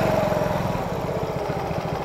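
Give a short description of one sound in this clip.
A motorbike engine runs nearby.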